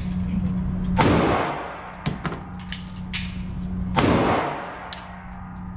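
A handgun fires single shots that echo sharply in an indoor range.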